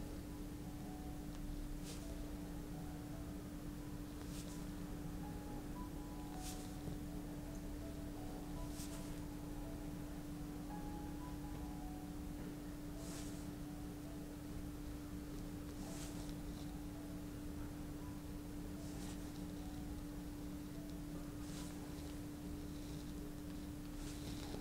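Hands rub and press on a towel with soft rustles.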